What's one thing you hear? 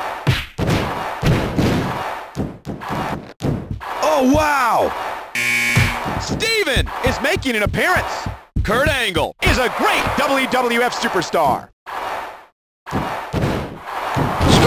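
Heavy thuds and slams sound as wrestlers strike and throw each other.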